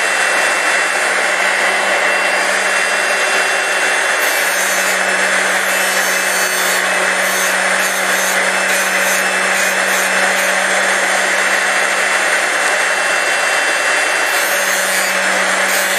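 A cutter grinds against a metal key with a harsh, hissing whir.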